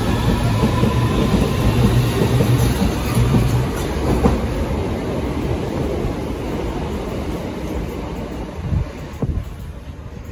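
A train's wheels clatter and squeal on the rails.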